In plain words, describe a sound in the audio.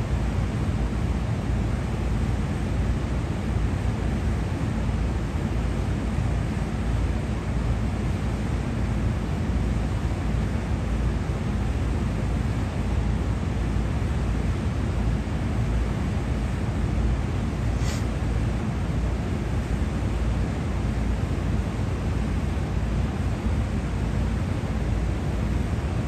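A rooftop ventilation fan hums with a steady low rumble, close by.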